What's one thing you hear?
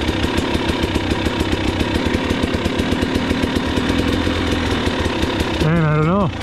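A dirt bike engine putters and thumps rapidly close by.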